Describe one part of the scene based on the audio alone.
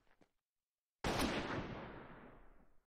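A shotgun fires with a loud blast that rings and slowly fades.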